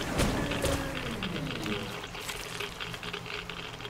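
Water sprays hissing from a leaking pipe.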